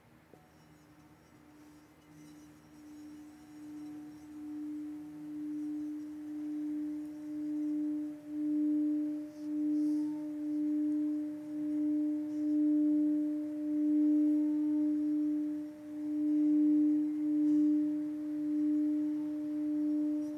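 A singing bowl is rubbed into a steady ringing hum that slowly swells louder.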